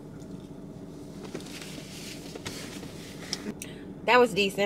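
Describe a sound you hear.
A woman crunches on a snack close by.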